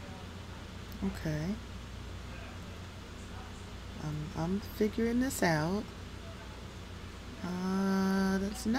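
A young woman speaks calmly into a microphone in short bursts.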